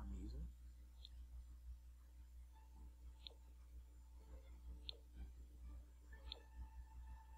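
A short soft interface chime sounds each time an item is picked.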